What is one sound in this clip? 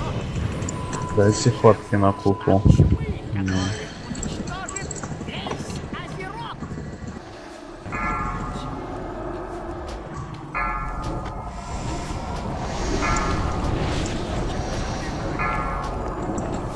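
Magic spells crackle and boom in a fierce battle.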